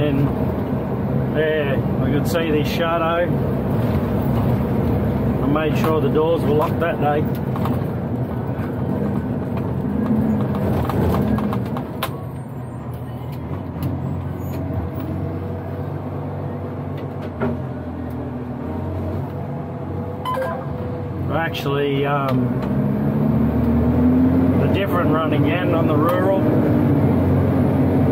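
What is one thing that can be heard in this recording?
A truck cab rattles and knocks over bumps.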